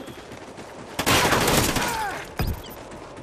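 Rapid gunfire rattles in a burst.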